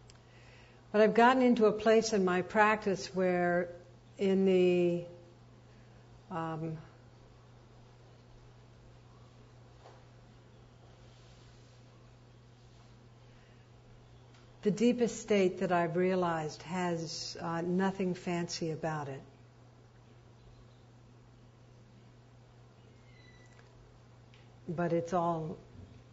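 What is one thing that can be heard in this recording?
A middle-aged woman speaks calmly into a close microphone, pausing often.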